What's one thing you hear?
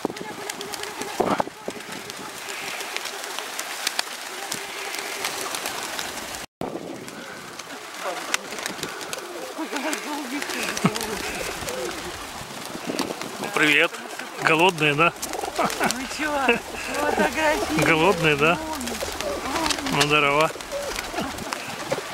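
Pigeons flap their wings loudly as they take off and land.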